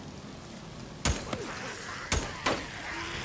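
A rifle fires several shots.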